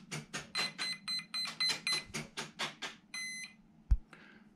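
A radio controller beeps repeatedly as its buttons are pressed.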